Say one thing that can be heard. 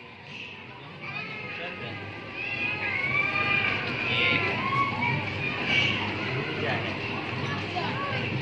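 Children's voices chatter in the background.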